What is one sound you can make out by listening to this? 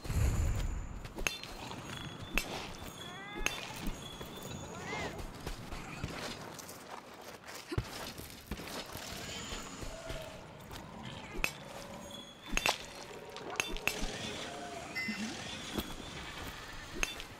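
Crystal shards shatter with sharp, glassy cracks.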